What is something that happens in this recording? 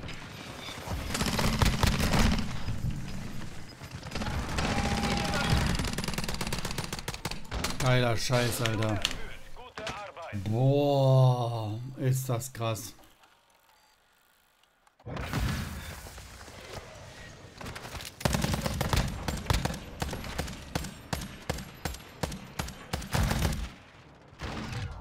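Gunfire from a video game rattles in quick bursts.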